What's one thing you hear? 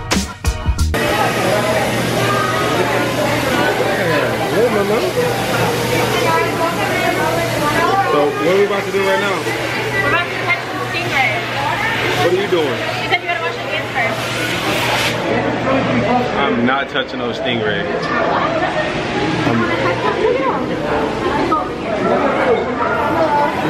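A crowd chatters in a busy echoing hall.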